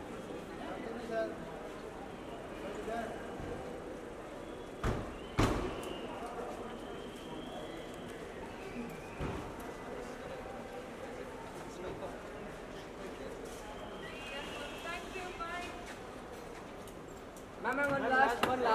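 Men call out nearby in an echoing space.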